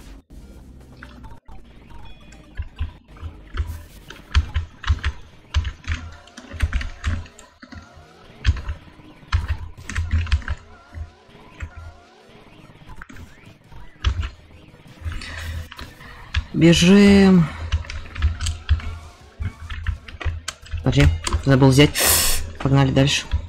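Fast game sound effects clatter and thump throughout.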